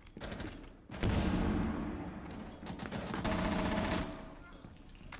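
Gunshots crack in a game.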